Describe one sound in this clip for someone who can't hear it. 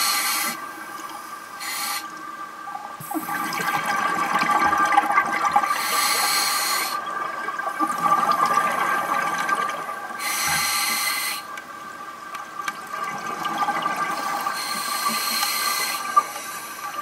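A diver's exhaled bubbles rush and gurgle in bursts underwater.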